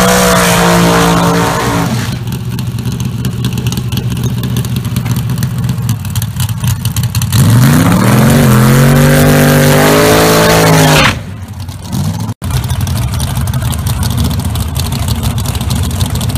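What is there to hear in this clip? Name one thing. A racing car engine rumbles loudly at idle.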